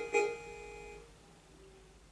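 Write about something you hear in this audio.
A short electronic game jingle beeps briefly.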